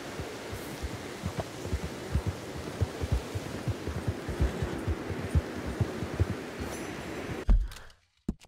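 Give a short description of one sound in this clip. A horse's hooves thud on soft ground.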